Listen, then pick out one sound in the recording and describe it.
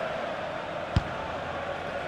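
A football is struck with a sharp thud.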